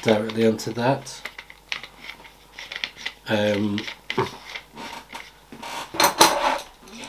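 Small metal parts click and rattle as a man handles a tool.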